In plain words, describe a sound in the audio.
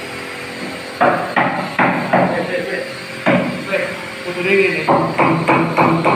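A hammer taps repeatedly on wood.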